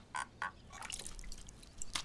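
Water pours from a glass.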